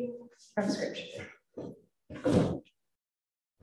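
A woman speaks into a microphone in a reverberant hall.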